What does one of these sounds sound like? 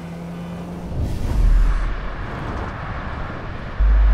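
A truck engine rumbles deeply close by.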